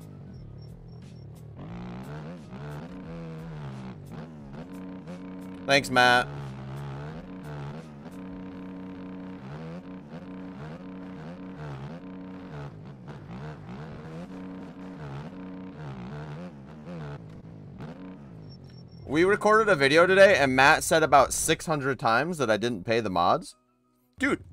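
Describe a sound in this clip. A motorcycle engine revs and whines steadily, rising and falling in pitch.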